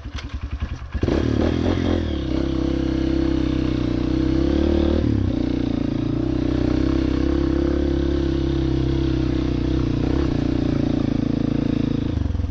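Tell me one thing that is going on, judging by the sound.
A dirt bike engine revs and drones steadily while riding.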